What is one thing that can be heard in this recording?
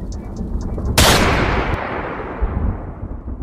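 A gunshot booms loudly and echoes away.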